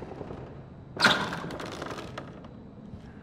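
A heavy door is pushed open.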